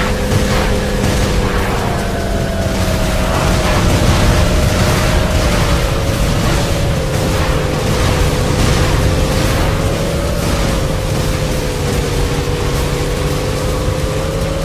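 Energy blasts burst with a crackling roar.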